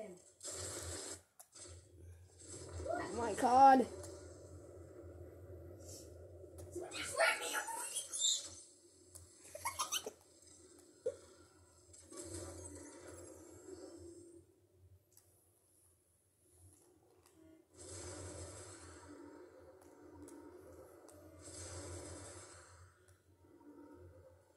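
Video game sound effects and music play from a television speaker.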